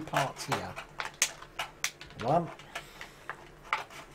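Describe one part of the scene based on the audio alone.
A plastic tray crinkles and clicks as it is handled.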